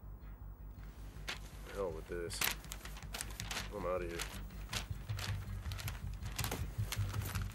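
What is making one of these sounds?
Paper rustles and crinkles as it is unfolded.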